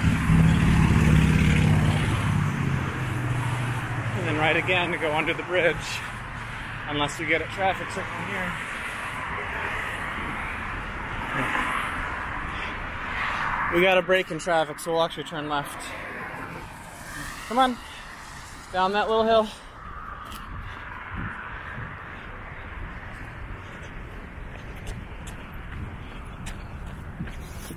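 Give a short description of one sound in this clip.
Wind buffets and rushes past outdoors.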